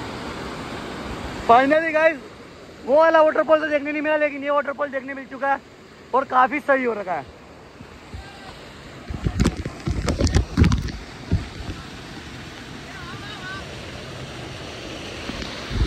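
Water rushes and splashes down a rocky waterfall close by.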